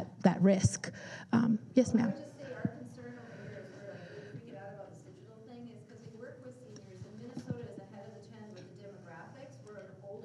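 A woman speaks calmly into a microphone in a room with some echo.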